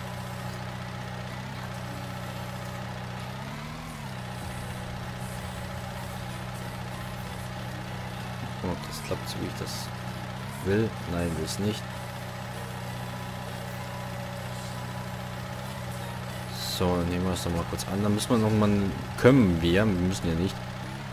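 A small loader's engine hums steadily.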